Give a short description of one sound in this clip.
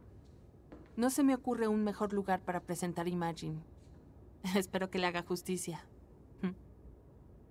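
A woman speaks nearby with animation.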